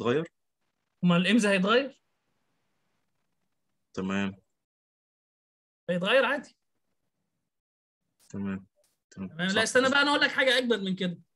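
A man speaks calmly and closely into a microphone, in short phrases with pauses.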